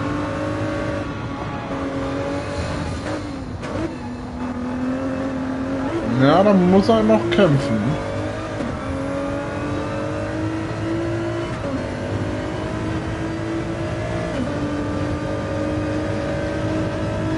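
A racing car engine roars steadily, rising in pitch and dropping with each gear change.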